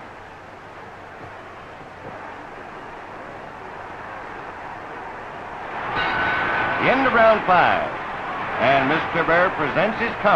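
A crowd cheers around a boxing match.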